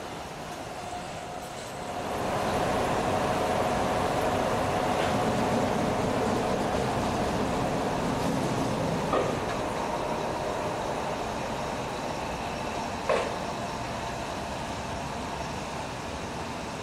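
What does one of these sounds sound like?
An electric locomotive hums loudly as it rolls slowly past close by.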